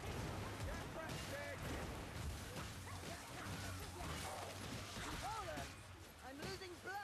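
Blades slash and strike flesh with heavy thuds.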